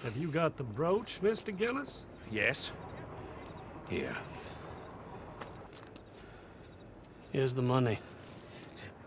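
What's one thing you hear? A man speaks calmly at a distance.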